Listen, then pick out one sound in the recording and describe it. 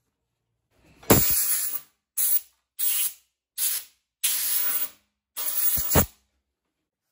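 A spray nozzle hisses in short, sharp bursts.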